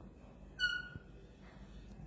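A marker squeaks softly across paper.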